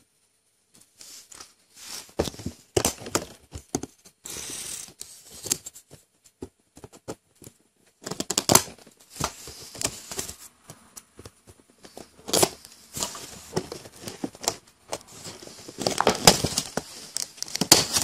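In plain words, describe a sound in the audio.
Stiff plastic packaging crackles and creaks as fingers handle it.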